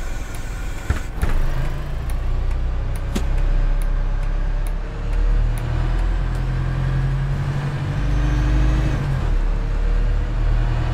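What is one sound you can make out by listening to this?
A bus engine hums steadily, rising and falling in pitch.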